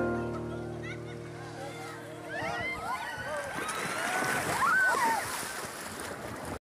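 River water rushes and splashes.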